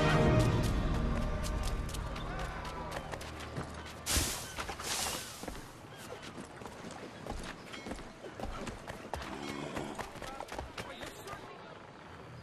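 Footsteps run quickly over wooden boards and stone.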